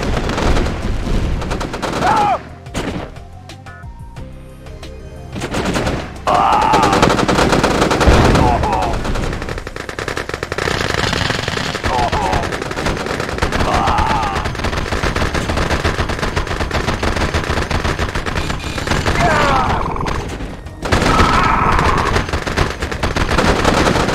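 Gunfire and explosions crackle from a battle in a game.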